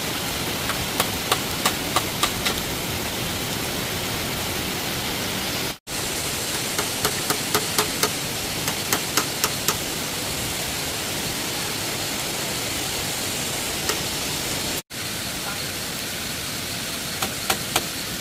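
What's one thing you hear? A hammer taps sharply on bamboo.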